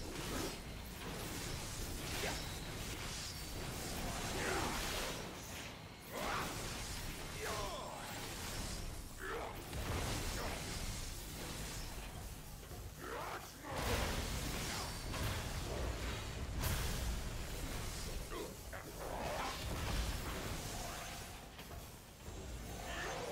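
Magic blasts crackle and boom during a fight.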